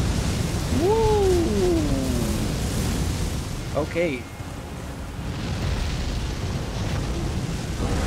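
Flames roar in a loud fiery blast.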